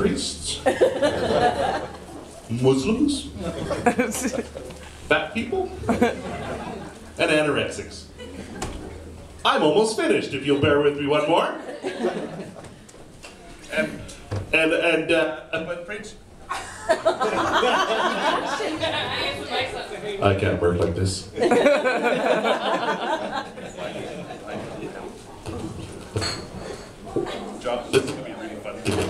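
A man talks with animation through a microphone and loudspeakers.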